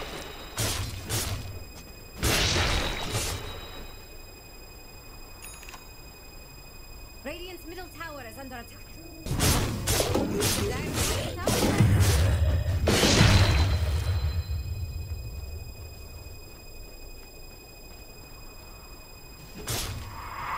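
Game spell effects and combat sounds burst and crash in loud bursts.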